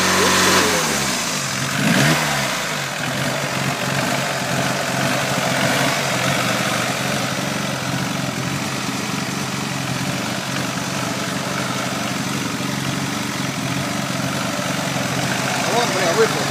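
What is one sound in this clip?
A car engine idles with a steady rumble.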